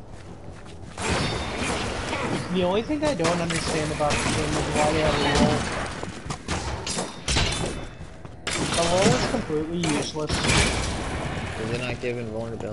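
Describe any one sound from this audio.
Blows land with heavy thuds in a fast fight.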